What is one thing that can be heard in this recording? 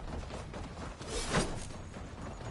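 A weapon whooshes as a game character swings it.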